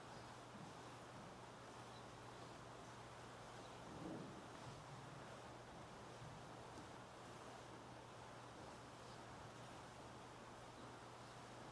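A man chants softly at a distance in an echoing hall.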